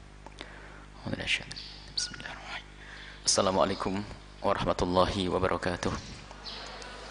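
An older man speaks slowly and calmly into a microphone, with long pauses.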